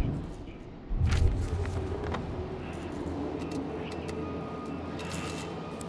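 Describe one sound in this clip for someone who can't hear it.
A sheet of paper rustles as it is unfolded.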